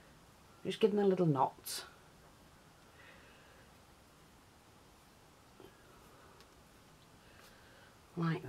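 A ribbon rustles softly as it is tied.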